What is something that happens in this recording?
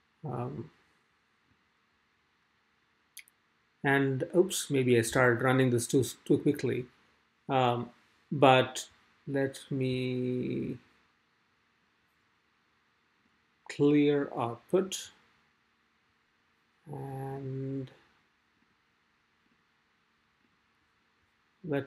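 A young man speaks calmly and closely into a microphone, explaining in pauses.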